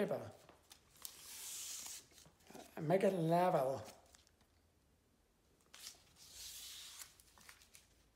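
Tape is pulled off a roll with a tearing rasp.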